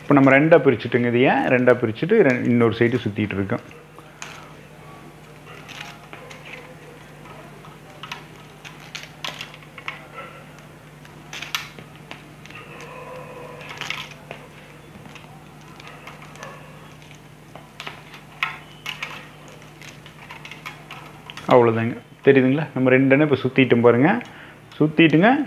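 Plastic strips rustle and click softly as they are woven.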